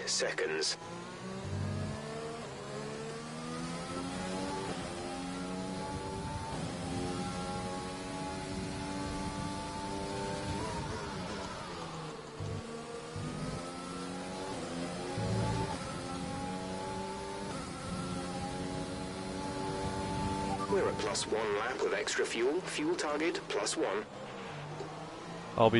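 A racing car engine screams, rising in pitch as it speeds up and dropping as it slows for corners.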